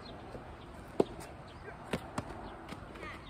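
A tennis ball is struck with a racket outdoors.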